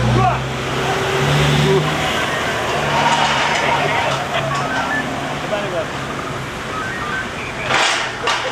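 A bus engine rumbles as the bus drives slowly away.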